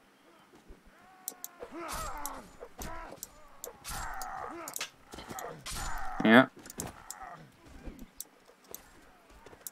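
Metal weapons strike and thud in a close fight.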